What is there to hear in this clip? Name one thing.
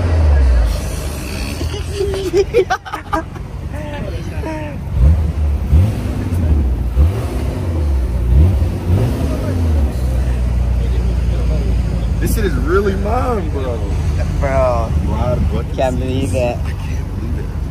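A young man talks and laughs cheerfully close by.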